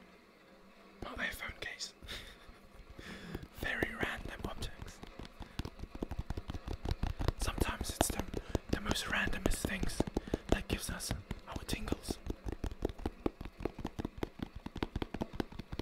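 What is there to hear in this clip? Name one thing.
A young man speaks softly and close to a microphone.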